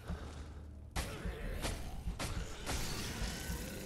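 A sword slashes and strikes with sharp hits.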